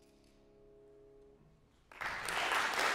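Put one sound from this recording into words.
A piano's last chord rings softly and fades.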